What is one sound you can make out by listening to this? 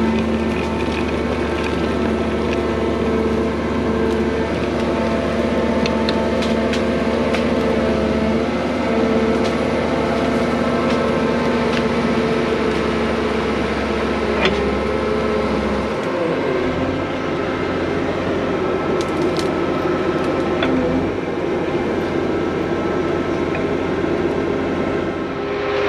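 A trenching blade scrapes through soil.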